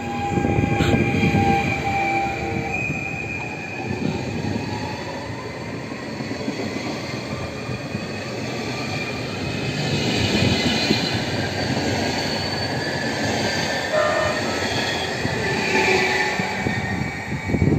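An electric train rolls past along the platform, its wheels rumbling and clattering on the rails.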